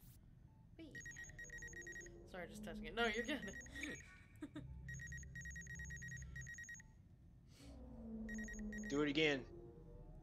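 A game scanner beeps and hums steadily.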